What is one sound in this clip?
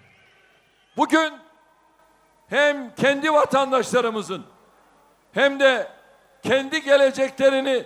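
A large crowd chants loudly in unison in rhythmic bursts outdoors.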